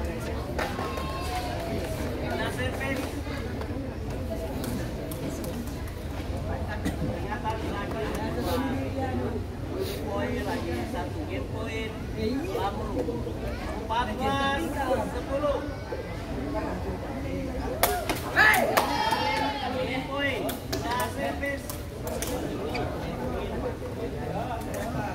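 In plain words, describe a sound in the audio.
Young men call out to each other across a court outdoors.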